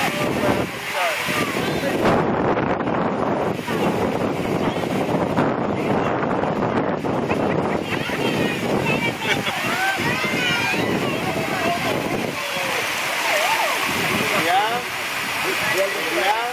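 Water splashes as children swim and kick.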